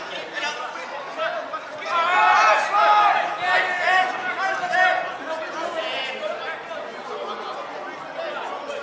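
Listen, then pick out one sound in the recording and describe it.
Young players shout and call out to each other outdoors on an open pitch.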